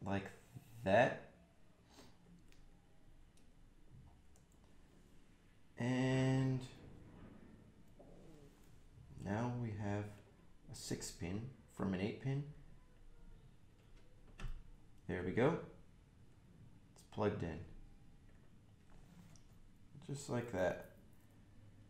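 A young man talks calmly into a nearby microphone in short bursts.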